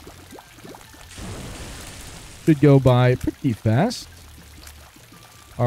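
Soft watery shots pop in quick succession.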